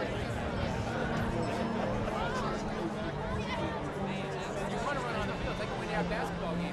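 Bagpipes play a steady droning tune outdoors.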